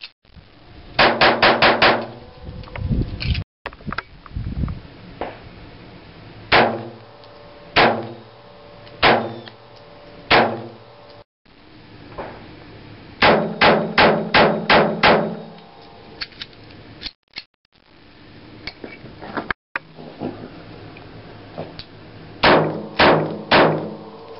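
A pistol fires sharp shots outdoors, in quick bursts and single shots.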